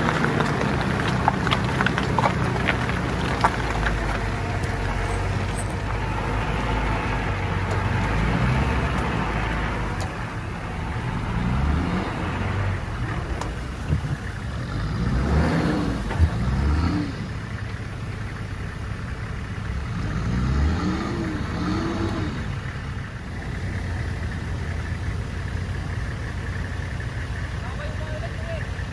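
An off-road truck's engine rumbles and revs repeatedly as it climbs through mud.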